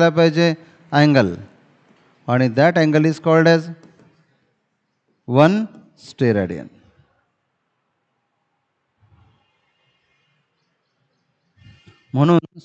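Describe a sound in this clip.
A man speaks calmly and clearly close to a microphone.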